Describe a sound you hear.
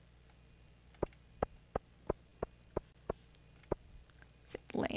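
Footsteps tap lightly on cobblestones.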